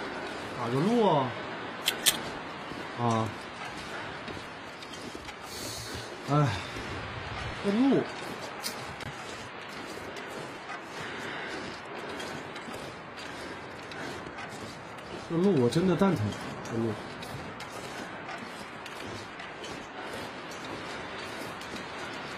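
Footsteps crunch through snow.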